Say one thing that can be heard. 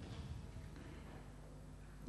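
An elderly man speaks into a microphone.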